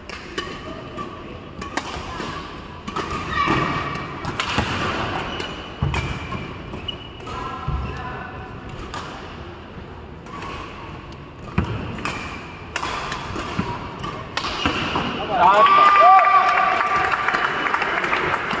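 Voices chatter in a large echoing hall.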